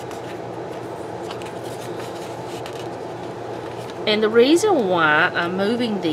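A paper page flips over.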